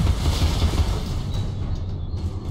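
A game weapon fires rapidly with a rattling burst.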